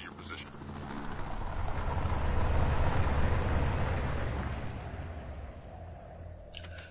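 A column of heavy trucks rumbles past.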